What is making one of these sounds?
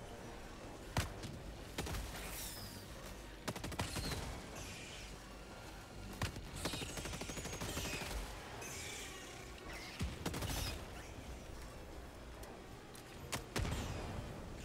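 Gunshots crack now and then, with a sharp echo.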